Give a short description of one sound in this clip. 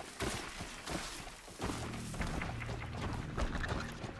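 A large mechanical creature stomps and clanks nearby.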